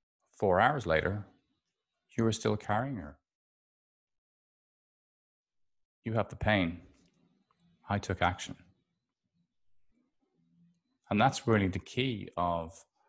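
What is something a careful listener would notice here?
A middle-aged man speaks calmly and closely into a microphone, with pauses.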